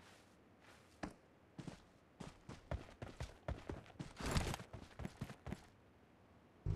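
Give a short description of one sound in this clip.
Footsteps crunch quickly over dry grass and dirt.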